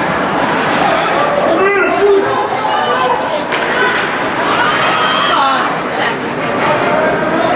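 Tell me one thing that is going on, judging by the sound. Spectators shout and cheer in a large echoing arena.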